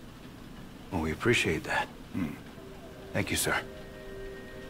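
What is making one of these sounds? A young man answers calmly and gratefully up close.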